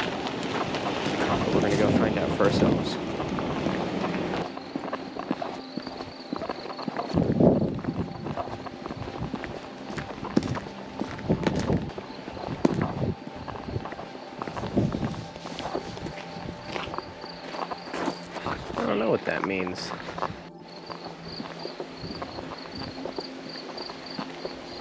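Bicycle tyres crunch and rattle over a gravel road.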